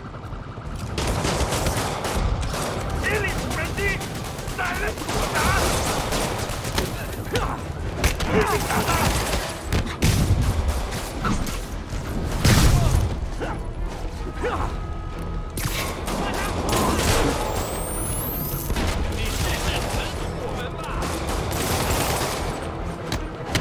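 Punches and kicks thud in a street fight.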